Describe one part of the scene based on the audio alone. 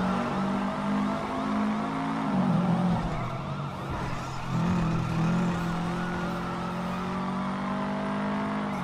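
A car engine revs and drones, rising and falling in pitch as gears change.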